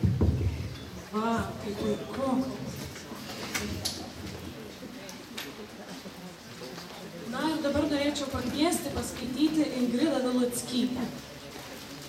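A young woman sings into a microphone through a loudspeaker.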